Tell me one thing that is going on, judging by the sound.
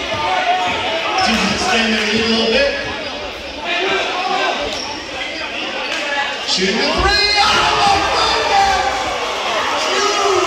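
Men shout and call out to each other in a large echoing gym.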